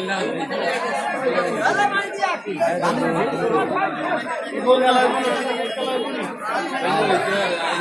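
Men talk close by in a lively chatter.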